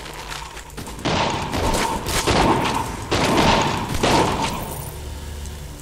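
Blows and slashes land rapidly in a fight.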